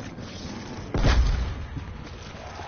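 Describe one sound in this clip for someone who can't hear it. A heavy gun fires a loud blast.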